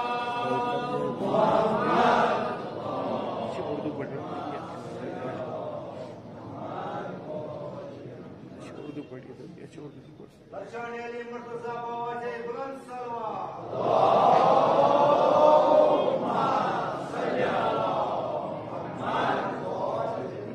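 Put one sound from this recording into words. A man speaks with feeling through a loudspeaker in an echoing hall.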